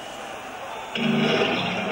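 A rock band starts playing loudly on amplified guitars and drums.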